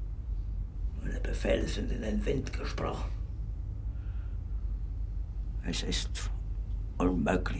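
A man speaks in a low, strained voice.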